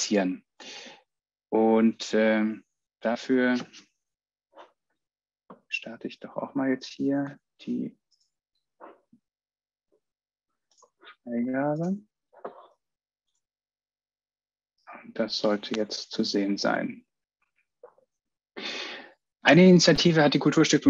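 A man speaks calmly into a microphone over an online call, with pauses.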